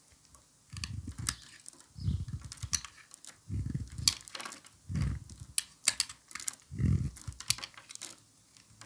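A blade scrapes and shaves a soft block in repeated close strokes, with crisp crackles.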